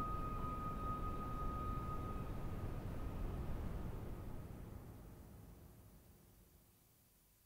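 A synthesizer plays a steady, hazy tone with a noisy rumble that slowly fades away.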